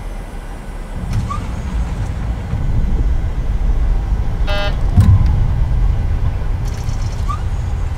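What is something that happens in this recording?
Tyres rumble over a runway as speed builds.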